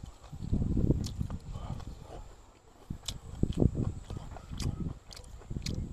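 A man chews meat noisily close to the microphone.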